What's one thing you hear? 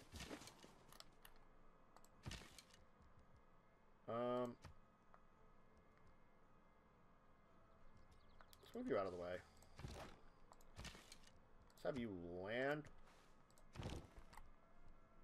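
Short computer game interface clicks sound now and then.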